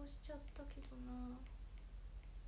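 A young woman speaks softly and briefly, close by.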